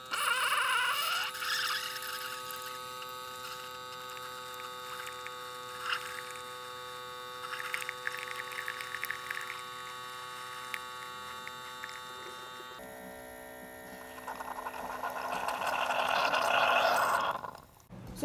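Coffee trickles into a mug.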